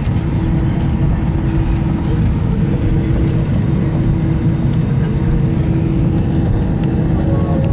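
An airplane engine drones with a steady low roar inside the cabin.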